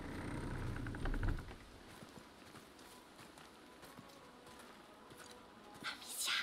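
Footsteps walk slowly on a stone floor.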